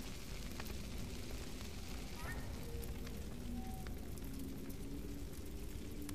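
Dry grass burns with crackling, roaring flames.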